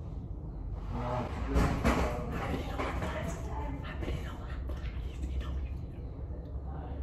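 A young man laughs quietly close by.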